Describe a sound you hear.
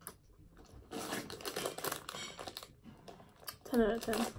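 A plastic snack bag crinkles.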